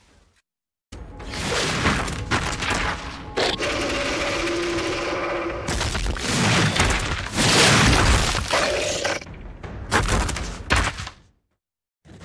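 A large monster growls and roars.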